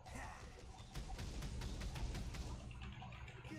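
Magic blasts crackle and strike in a fight.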